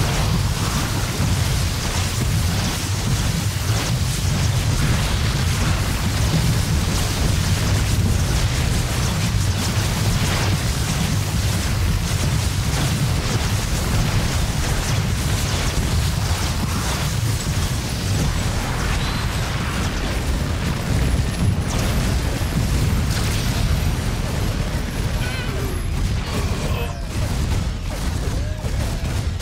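Weapons fire rattles in a video game battle.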